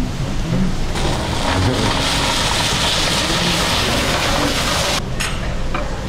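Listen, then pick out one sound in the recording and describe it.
Food sizzles loudly in a hot pan.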